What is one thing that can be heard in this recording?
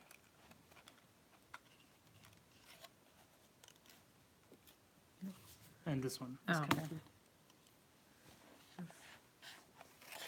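Plastic controller parts click and snap together.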